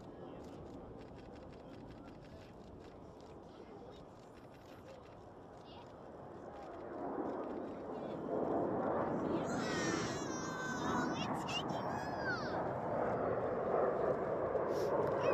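A jet's engines roar as it takes off and climbs, growing louder.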